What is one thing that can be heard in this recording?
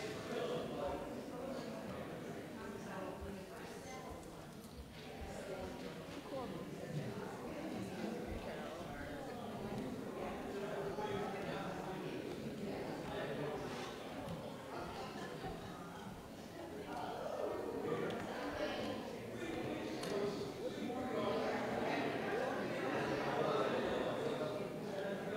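A crowd of adults chat at once in a large echoing hall.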